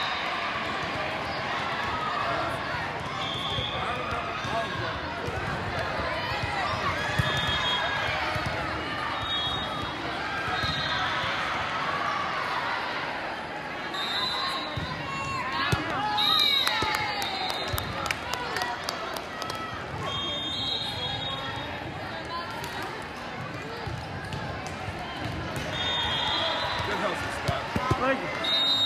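A crowd of spectators chatters and cheers throughout in a large echoing hall.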